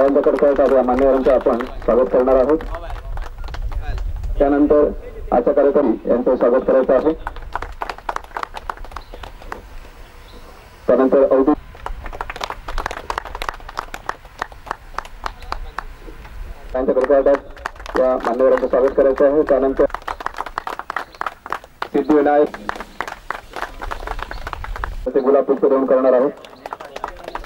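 A man announces loudly through a loudspeaker.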